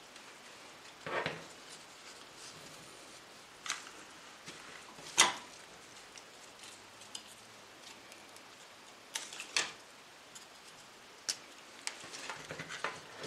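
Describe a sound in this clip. Leaves and stems rustle as they are handled.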